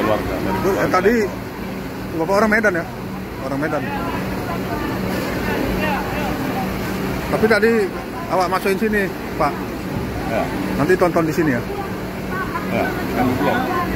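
A middle-aged man talks close by.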